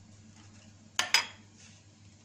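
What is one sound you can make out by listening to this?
A metal spoon scrapes and taps as filling is spooned out.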